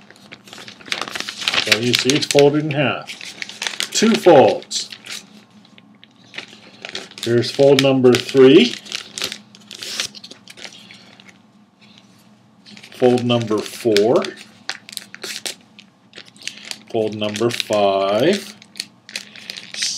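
Paper rustles and crinkles in hands.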